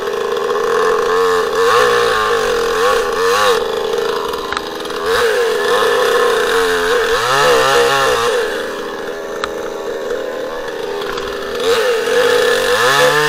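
A two-stroke chainsaw revs up and down.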